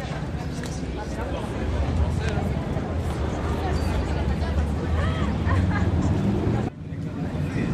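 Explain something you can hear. A crowd of people talks outdoors.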